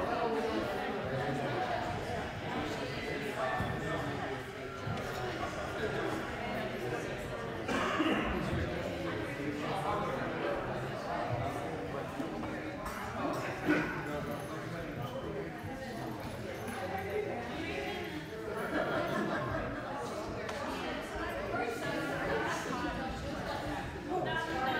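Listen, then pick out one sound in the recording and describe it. Many people chatter in an echoing hall.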